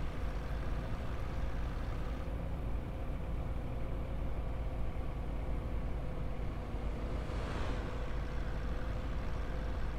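A bus engine drones steadily with a low rumble.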